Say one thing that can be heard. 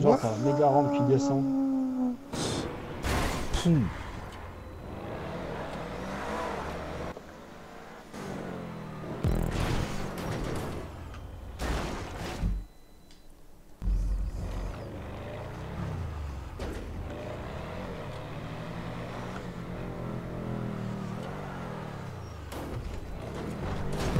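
A car engine revs and roars, rising and falling in pitch.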